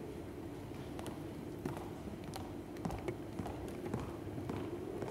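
Footsteps knock on a wooden stage floor.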